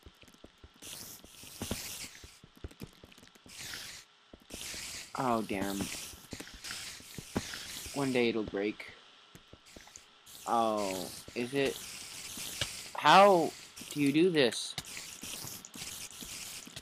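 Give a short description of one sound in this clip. A pickaxe digs into sand blocks with quick scraping taps.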